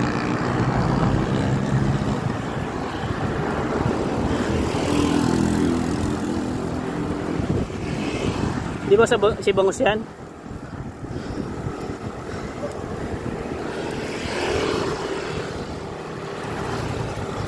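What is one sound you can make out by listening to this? Wind rushes and buffets outdoors.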